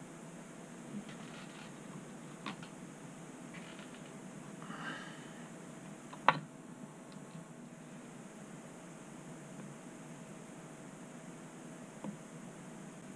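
Small metal tools click and tap against a wooden board.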